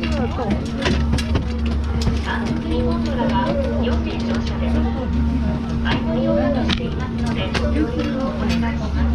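Several people chat nearby.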